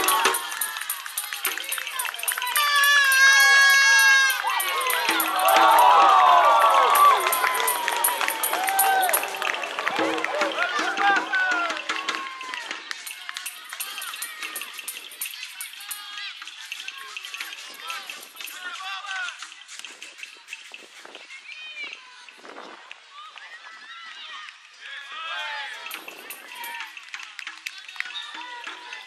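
Children shout and call out outdoors in an open field.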